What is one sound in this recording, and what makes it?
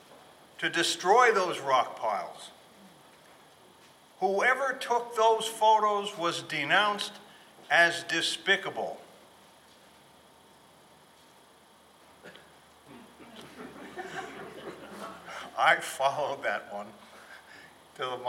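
An elderly man speaks with animation into a microphone, with pauses between phrases.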